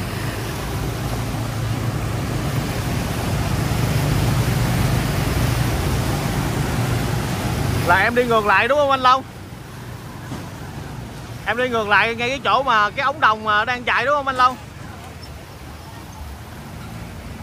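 Motorbike engines hum as they pass.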